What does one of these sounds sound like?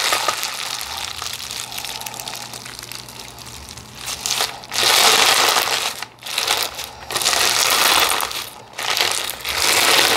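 Sticky slime squishes, crackles and pops as hands knead it.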